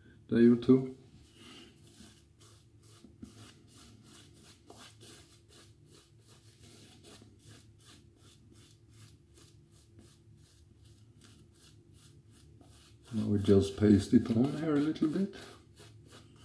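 A shaving brush swishes rapidly against stubble.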